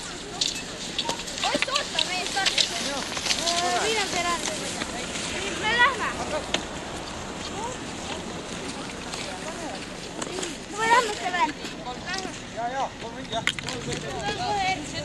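A small crowd of men and women cheers and shouts outdoors.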